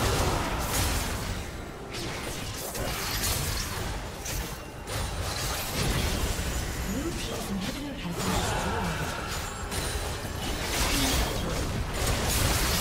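Spell blasts and weapon hits crash and whoosh in a video game team fight.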